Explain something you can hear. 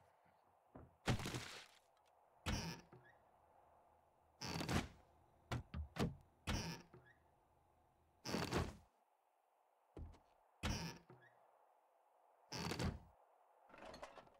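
Wooden cabinet doors bang open one after another.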